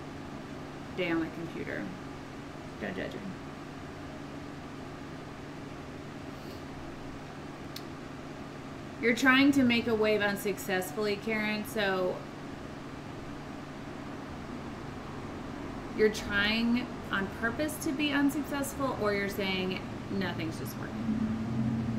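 A young woman talks calmly and close by, as if into a microphone.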